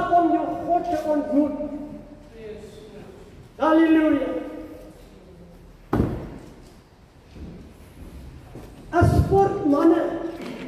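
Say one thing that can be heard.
An elderly man speaks slowly into a microphone, heard through loudspeakers in a hall.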